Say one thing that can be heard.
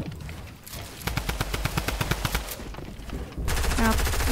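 Rapid clicking building sounds clatter in quick succession.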